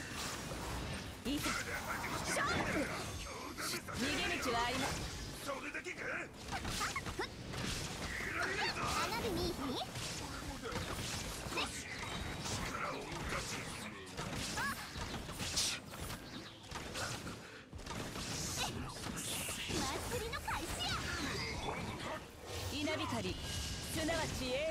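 Electric zaps crackle and burst during a fast fight.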